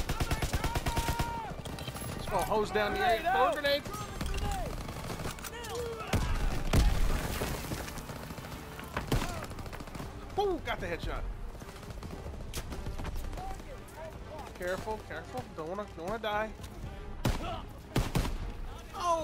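Gunshots crack in quick bursts and single shots, echoing briefly.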